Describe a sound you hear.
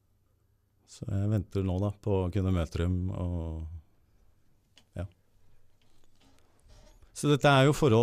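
An older man talks with animation into a close microphone.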